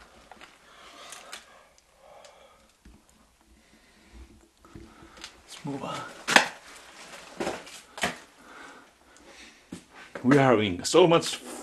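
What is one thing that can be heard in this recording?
A man speaks quietly and closely, his voice echoing in a small stone space.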